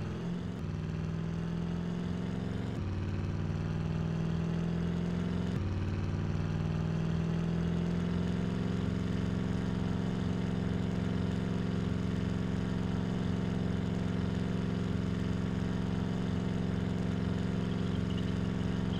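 An SUV engine accelerates through the gears, then holds a steady cruise.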